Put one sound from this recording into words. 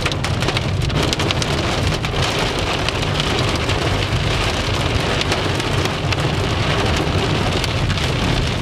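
Heavy rain pelts and drums against a car windscreen.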